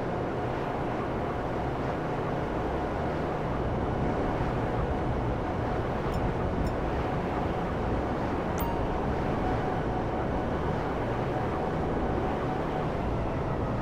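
A jet-powered hoverbike engine roars steadily.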